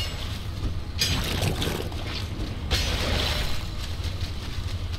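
A pickaxe strikes metal scrap with sharp clanks.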